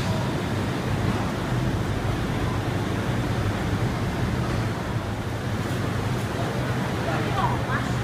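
A minivan drives past.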